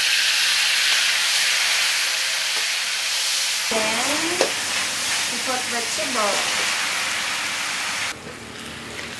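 Food sizzles loudly in a hot wok.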